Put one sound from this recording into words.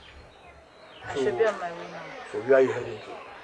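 A man speaks loudly and with feeling, close by, outdoors.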